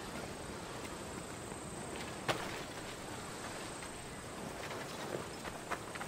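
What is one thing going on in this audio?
Footsteps crunch on a dirt and gravel path.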